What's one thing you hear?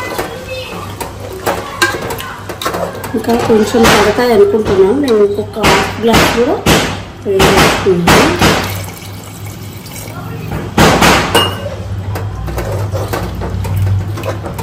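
A metal ladle stirs and clinks against a metal pot.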